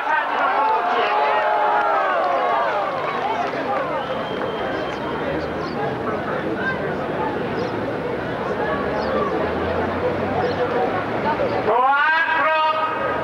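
An elderly man speaks into a microphone over a loudspeaker, echoing outdoors.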